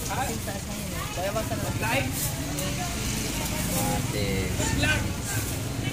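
A thin plastic bag rustles and crinkles.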